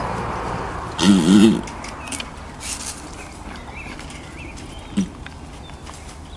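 A horse snorts and breathes close by.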